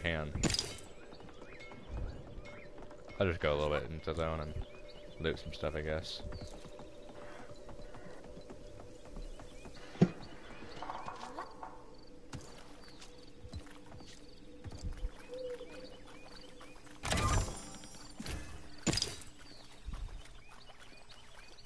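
Footsteps patter quickly on stone and grass.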